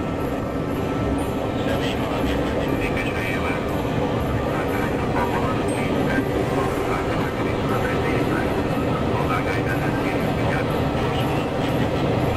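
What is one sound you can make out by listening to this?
A train rolls past close by with a steady rumble.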